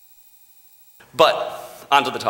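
A man speaks with animation through a microphone in a large room.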